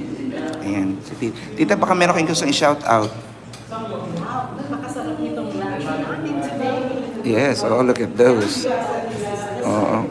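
A middle-aged woman laughs close by.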